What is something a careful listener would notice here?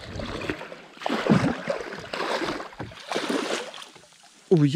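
A fish splashes and thrashes in the water close by.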